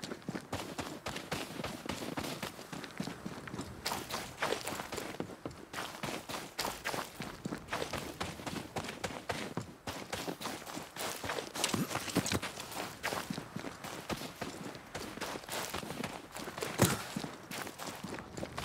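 Footsteps crunch quickly through snow.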